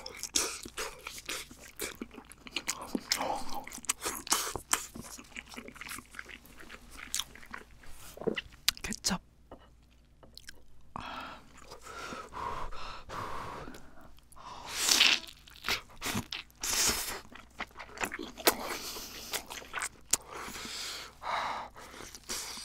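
A young woman chews crunchy food loudly, close to a microphone.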